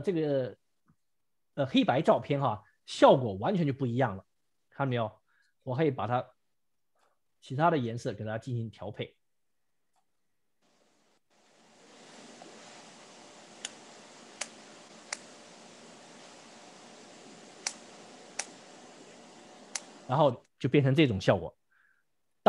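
A man talks calmly and clearly into a close microphone, in short phrases with pauses.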